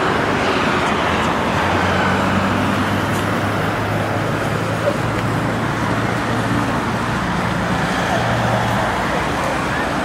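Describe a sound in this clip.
People chatter as they walk by outdoors.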